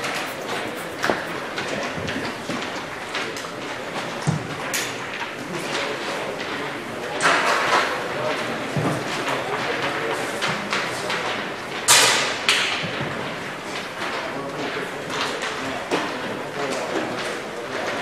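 Spectators murmur and call out close by.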